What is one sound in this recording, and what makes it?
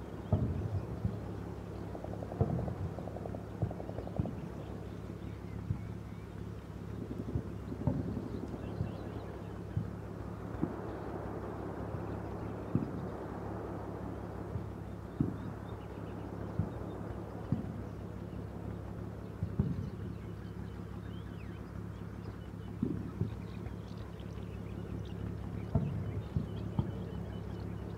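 Distant explosions and gunshots thud at irregular intervals.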